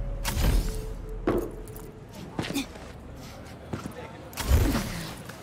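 Heavy thumps and whooshes of a game character jumping and landing.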